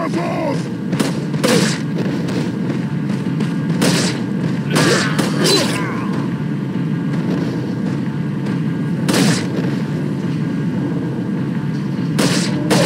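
A handgun fires a series of shots.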